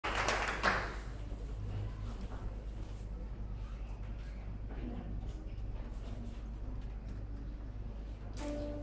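A woman sings.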